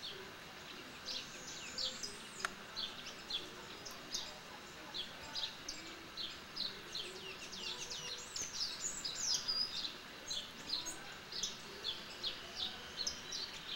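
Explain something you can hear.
Birds chirp in quick, high bursts from a tree.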